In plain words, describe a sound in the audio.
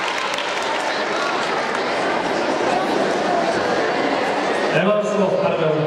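A large crowd chatters noisily in an echoing hall.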